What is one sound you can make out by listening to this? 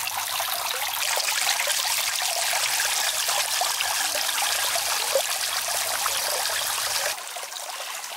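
Water splashes steadily down the tiers of a small fountain.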